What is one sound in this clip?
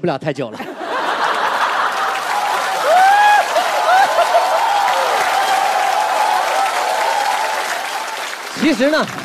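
An audience laughs and applauds loudly in a large hall.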